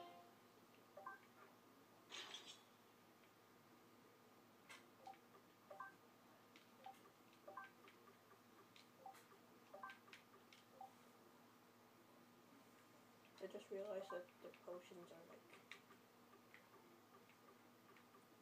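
Soft electronic blips sound as menu items are selected.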